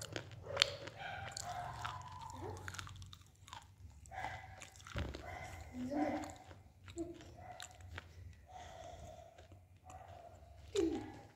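A young woman whispers very close to the microphone.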